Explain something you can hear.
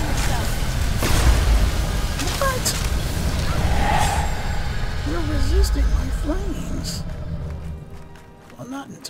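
Magic spells crackle and burst with loud roaring blasts.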